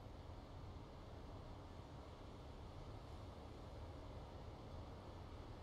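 A truck's diesel engine idles with a low, steady rumble.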